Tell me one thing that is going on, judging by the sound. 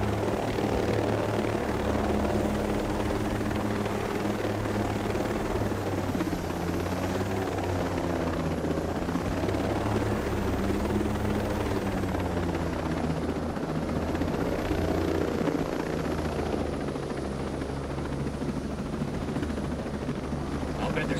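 A helicopter's rotor thumps steadily and its engine drones loudly close by.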